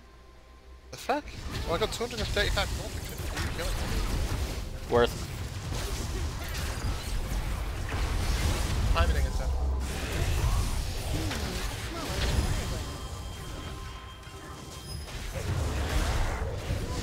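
Game spell effects crackle and whoosh during a fight.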